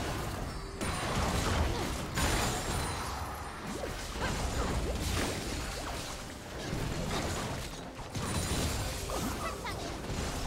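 Fantasy battle effects whoosh, clash and burst in quick succession.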